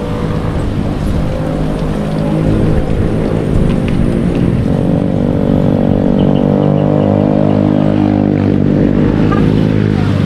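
A motorcycle engine hums steadily at close range, shifting in pitch.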